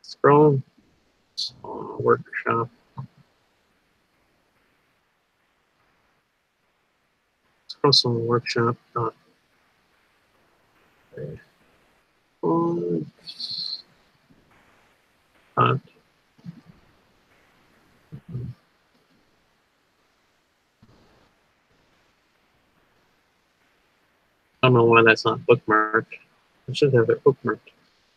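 A man speaks calmly in short bursts over an online call, heard through a headset microphone.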